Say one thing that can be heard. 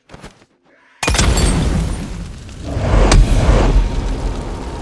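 A loud explosion bursts and rumbles.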